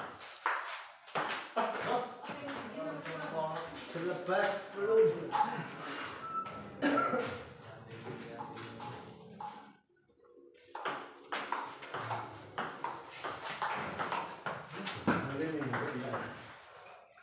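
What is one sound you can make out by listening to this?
A ping-pong ball clicks sharply against paddles and a table in a quick rally.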